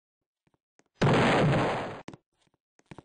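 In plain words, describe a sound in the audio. A rifle fires a single loud shot that booms and rings out.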